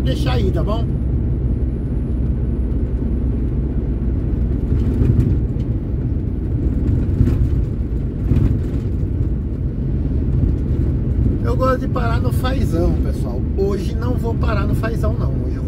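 A vehicle's engine hums with a low rumble of tyres on the road.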